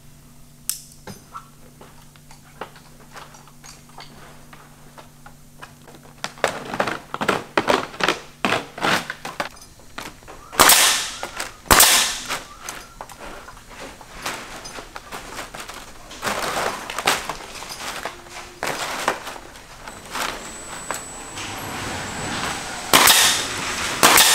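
Dry palm thatch rustles and crackles as it is handled.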